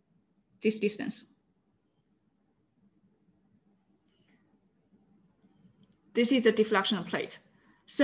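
A young woman speaks calmly through an online call microphone.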